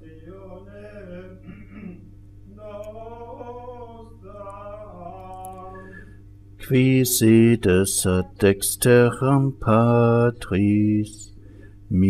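An elderly man chants a prayer, quietly at first and then loudly.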